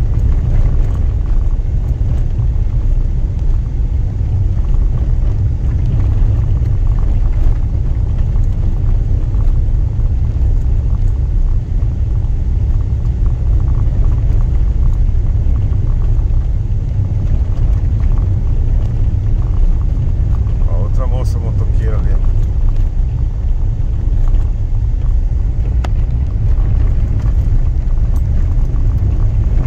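Tyres crunch and rumble over a dirt road.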